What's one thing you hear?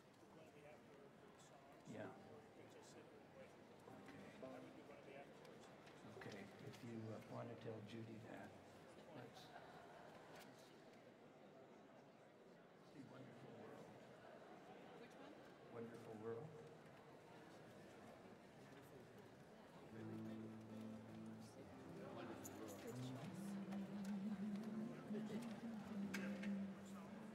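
Acoustic guitars play softly on a stage.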